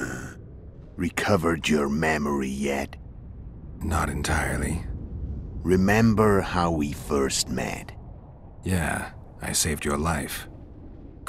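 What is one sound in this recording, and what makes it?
A second man answers in a low, gravelly voice.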